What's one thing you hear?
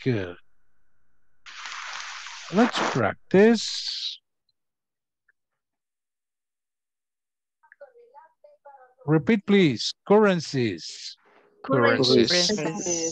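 A man speaks calmly into a microphone, as if in an online lesson.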